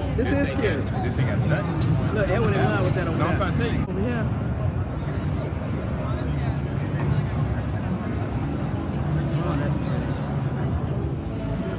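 A crowd of men and women chatter nearby in a large echoing hall.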